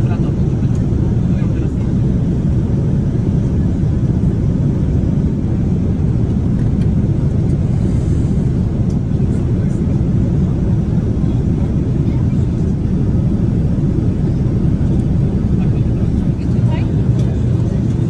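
Paper pages rustle as a menu is opened and turned.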